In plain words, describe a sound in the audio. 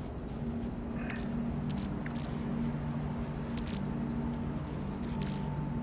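Short electronic blips and clicks sound.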